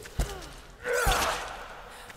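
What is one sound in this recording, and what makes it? A heavy blow lands with a thud.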